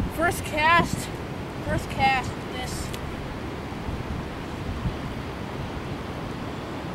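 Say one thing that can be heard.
Water laps gently at a shore.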